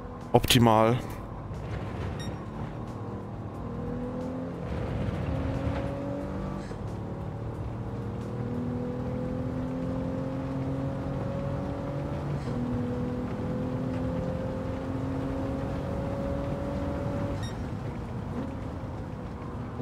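A racing car engine revs high and shifts up through the gears.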